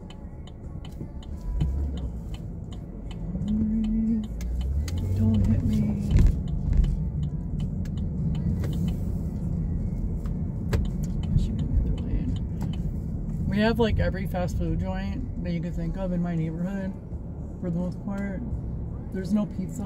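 A car engine hums low and steadily inside the cabin.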